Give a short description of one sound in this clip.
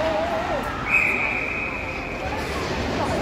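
A whistle blows sharply.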